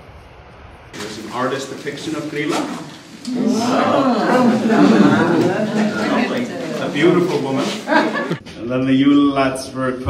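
A man speaks loudly to a group in an echoing room.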